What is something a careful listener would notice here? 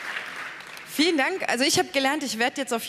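A young woman speaks through a handheld microphone in a large hall.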